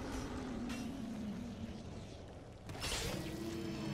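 A huge creature rumbles and growls low.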